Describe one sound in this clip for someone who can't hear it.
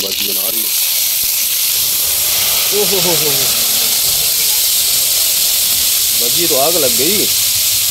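Oil hisses and sizzles loudly in a hot pan.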